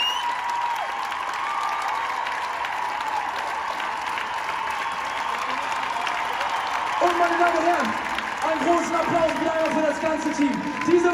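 A large crowd cheers and screams in a big echoing arena.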